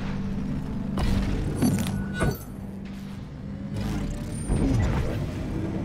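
Energy blasts burst with sharp bangs.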